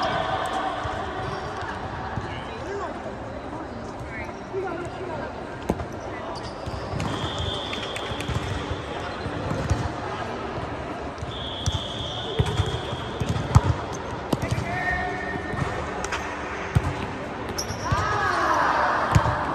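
A volleyball thuds off players' forearms and hands in a large echoing hall.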